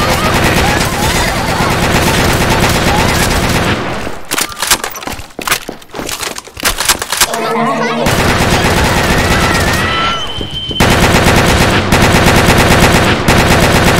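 Gunfire blasts rapidly in quick bursts.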